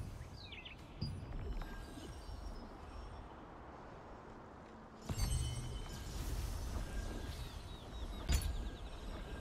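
Soft menu clicks and chimes sound now and then.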